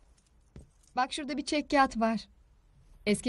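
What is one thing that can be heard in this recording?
A young woman speaks nearby.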